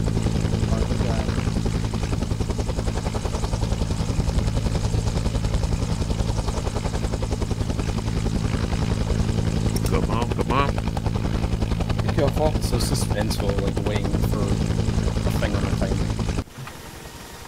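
A helicopter's rotor thumps loudly and steadily, then cuts off.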